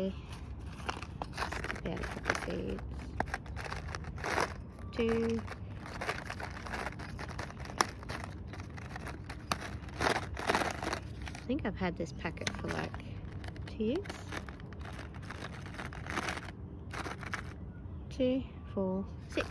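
A paper seed packet crinkles close by.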